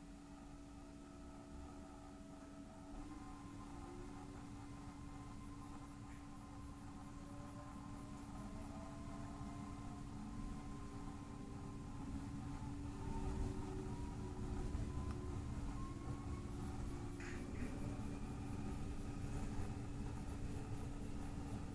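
A train hums steadily and rumbles as it pulls away and speeds up.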